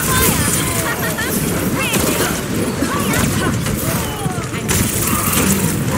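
Video game pistols fire in rapid bursts.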